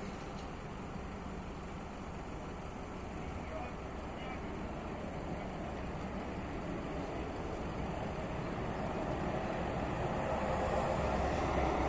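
Traffic rumbles past on a nearby road, growing louder.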